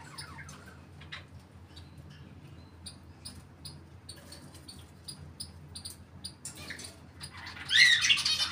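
A parrot makes soft clicking sounds.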